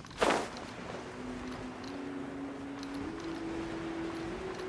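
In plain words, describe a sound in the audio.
Wind rushes steadily during gliding flight.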